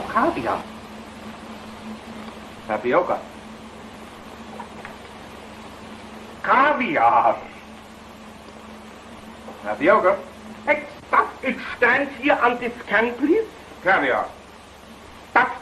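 A man speaks in short lines, heard through an old, hissy recording.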